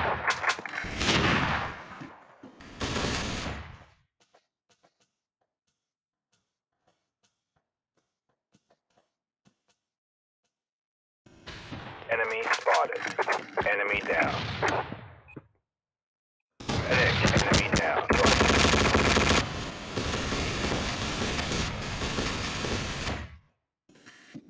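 A machine gun fires loud rapid bursts.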